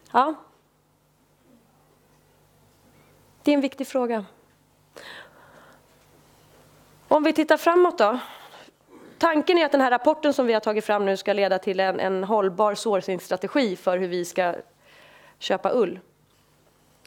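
A woman speaks calmly through a microphone, with pauses.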